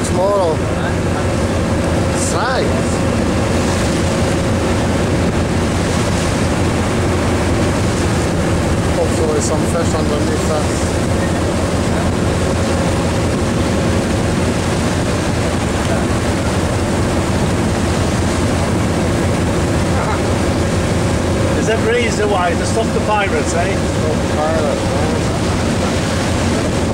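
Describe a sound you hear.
Water washes gently along a boat's hull.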